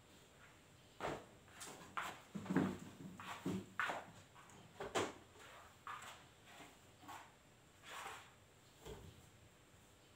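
Fabric rustles and crinkles as it is handled.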